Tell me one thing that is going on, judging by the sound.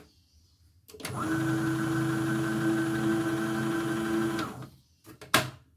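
A sewing machine motor hums steadily.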